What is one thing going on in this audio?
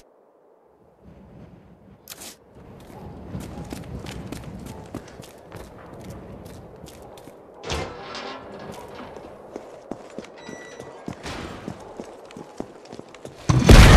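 Footsteps crunch on gravel and debris.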